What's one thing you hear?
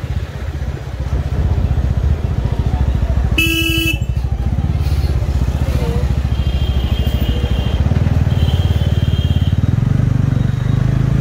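A motorcycle engine throbs steadily close by.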